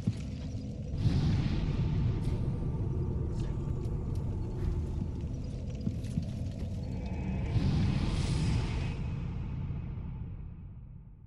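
A fire flares up with a loud whoosh.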